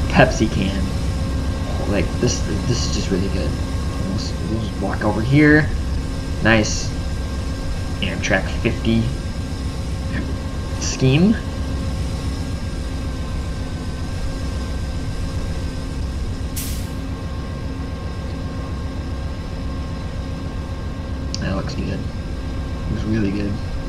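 Diesel locomotive engines idle with a low, steady rumble.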